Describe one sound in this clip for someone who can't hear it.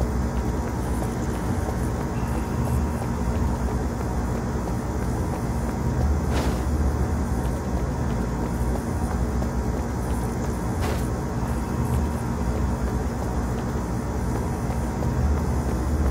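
Footsteps run on a metal floor.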